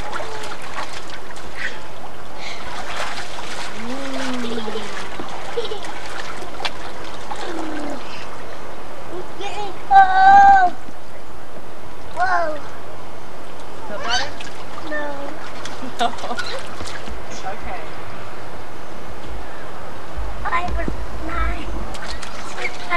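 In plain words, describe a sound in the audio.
Young children babble and squeal outdoors.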